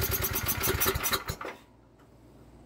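A generator engine runs loudly, then stops.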